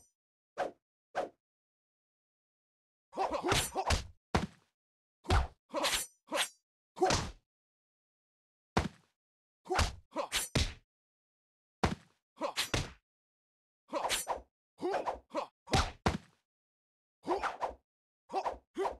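Game sword strikes clash and slash in bursts.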